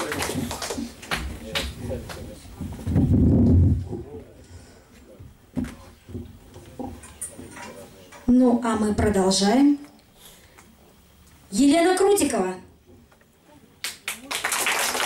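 A woman speaks into a microphone, heard through loudspeakers in a large hall.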